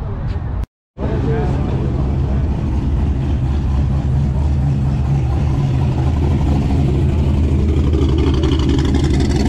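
A sports car engine roars loudly as it drives close by.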